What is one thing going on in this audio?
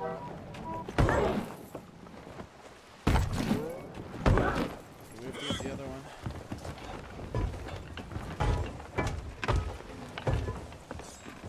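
Heavy thuds and knocks sound repeatedly.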